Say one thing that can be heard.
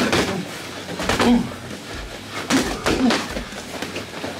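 Boxing gloves thud sharply against padded mitts in quick bursts.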